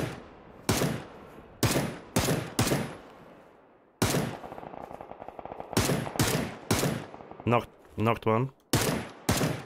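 Rifle shots fire in quick bursts, each with a sharp crack and a short echo.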